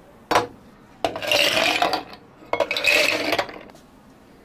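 Ice cubes clatter into glasses.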